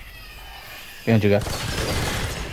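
Gunshots fire loudly in quick bursts.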